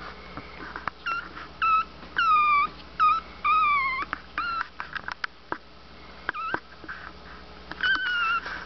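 Newborn puppies whimper and squeak up close.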